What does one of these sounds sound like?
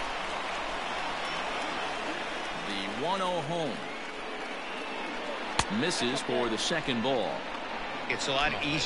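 A crowd murmurs steadily in a large stadium.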